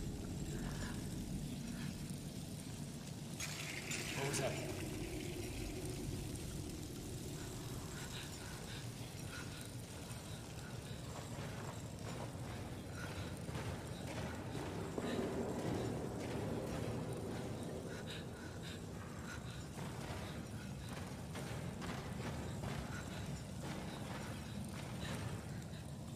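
A fire crackles softly.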